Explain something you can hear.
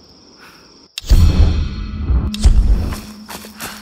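Footsteps run over rustling forest ground.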